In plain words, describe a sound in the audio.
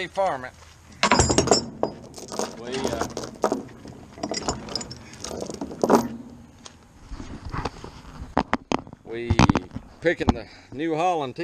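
Metal tools clank and rattle against a chain.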